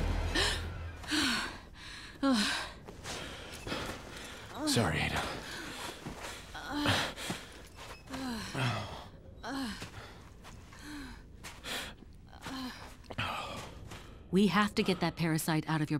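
A young woman speaks softly and breathlessly.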